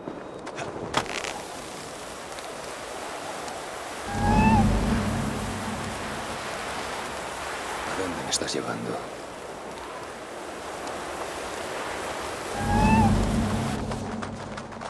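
A rope whirs as a figure slides down a zipline.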